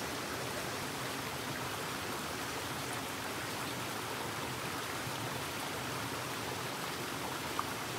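Water splashes as a man's hands dip into a stream.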